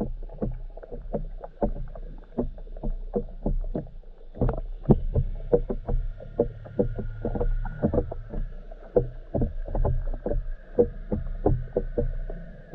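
Water rumbles dully, heard muffled from underwater.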